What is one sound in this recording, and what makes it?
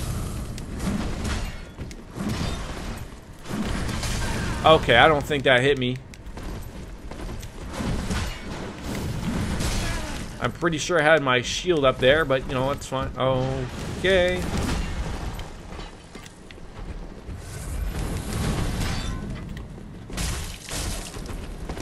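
Game weapons clash and thud in combat.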